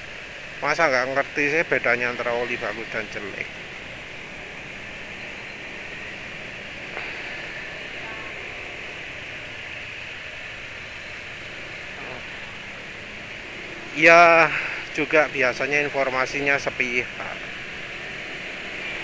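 Motorbike engines hum steadily in slow traffic nearby.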